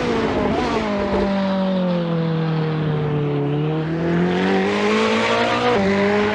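A racing car engine roars, dropping in pitch through a corner and then revving higher as it speeds up.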